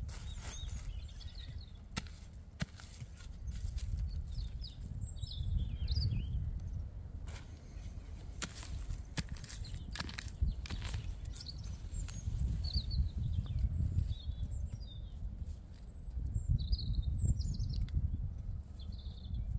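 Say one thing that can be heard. Plants rustle as they are pulled from the ground.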